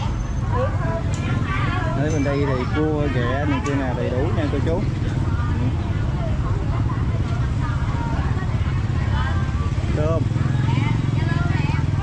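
Women talk nearby.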